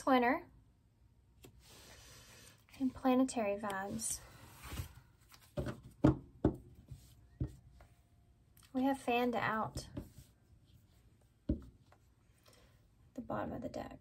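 Cards tap softly as they are laid down on a table.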